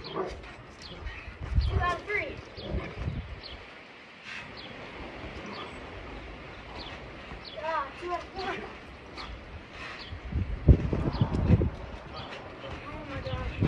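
A boy bounces on a trampoline, its mat thumping.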